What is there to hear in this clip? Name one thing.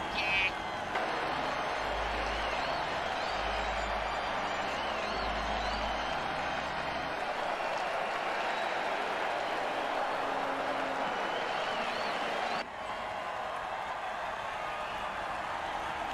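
A large crowd roars steadily in a big stadium.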